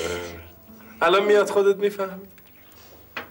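A man talks with amusement nearby.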